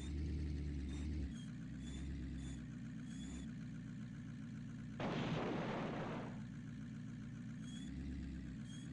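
A truck engine rumbles and revs steadily.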